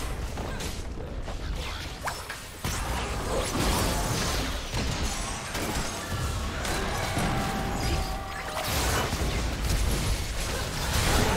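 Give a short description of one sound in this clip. Spell effects and weapon hits crackle and boom in a fast fight.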